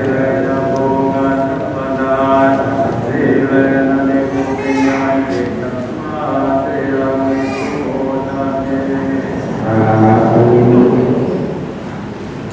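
A group of men chant together in a steady, droning unison.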